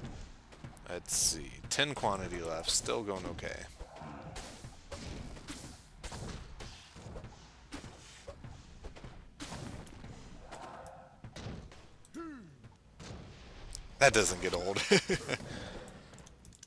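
Magic spells burst and crackle.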